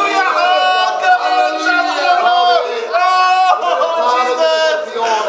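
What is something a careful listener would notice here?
A man prays loudly and fervently nearby.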